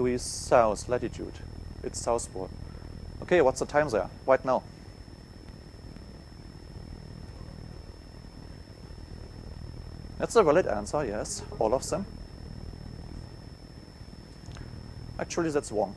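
A man speaks through a microphone in a large room, pausing between phrases.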